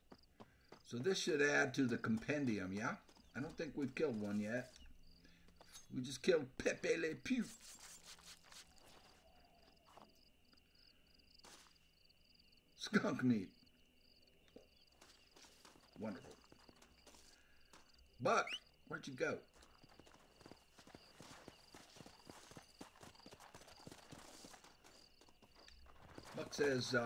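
An elderly man talks calmly into a microphone.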